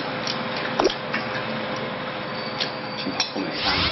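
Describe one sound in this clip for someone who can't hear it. Chopsticks clink against dishes.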